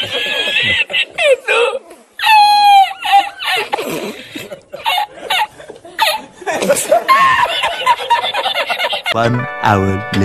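A middle-aged man laughs loudly and heartily.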